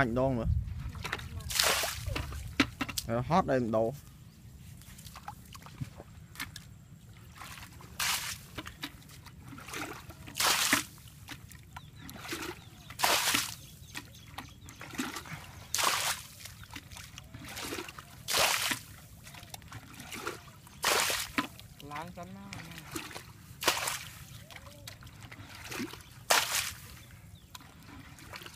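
Water splashes in bursts as a bucket is tipped out again and again.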